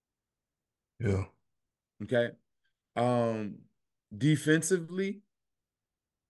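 A man speaks in short, lively bursts over an online call.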